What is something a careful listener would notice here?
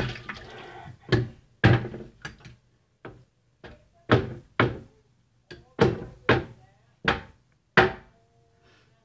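Objects knock and clatter on a counter.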